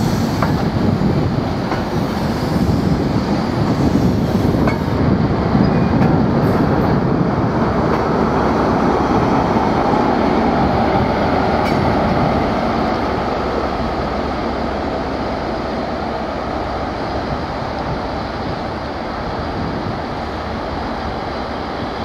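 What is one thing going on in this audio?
A passenger train rolls past close by, its wheels rumbling and clattering on the rails.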